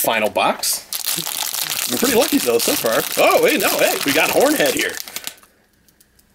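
A foil wrapper crinkles and rustles loudly.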